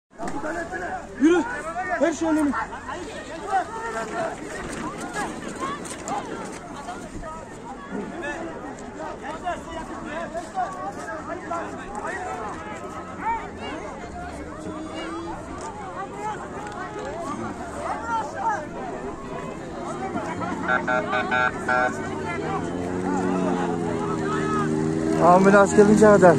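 A crowd of men and women chatter and shout outdoors.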